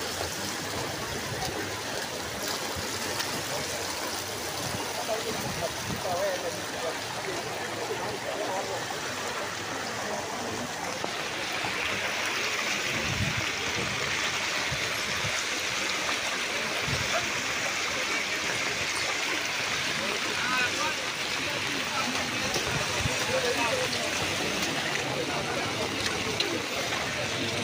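Rainwater splashes and runs over the ground.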